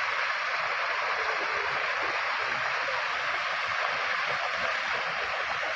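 Boys splash and wade through shallow water.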